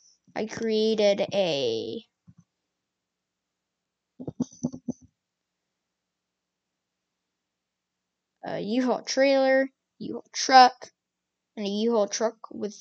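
A boy talks with animation close to a microphone, in short bursts.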